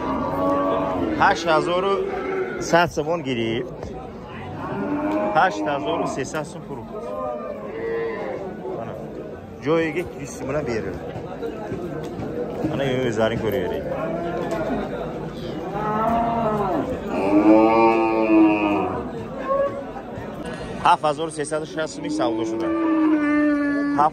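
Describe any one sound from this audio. Men talk loudly and with animation close by.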